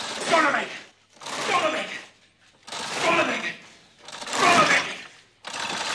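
A man screams in loud, repeated cries.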